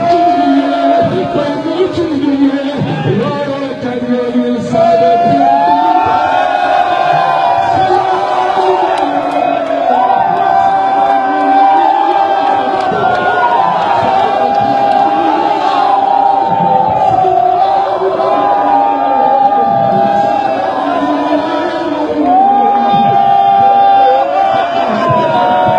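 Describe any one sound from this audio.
A man chants a slow, mournful melody through a microphone.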